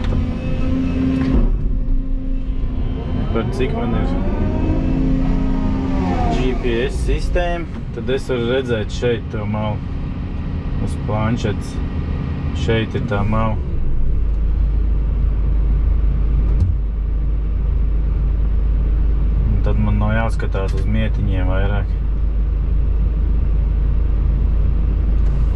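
A diesel excavator engine hums, heard from inside the cab.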